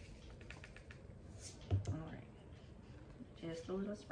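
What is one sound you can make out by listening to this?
A plastic cap snaps open.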